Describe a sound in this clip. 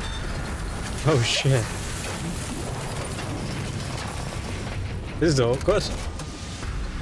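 A young man exclaims loudly into a close microphone.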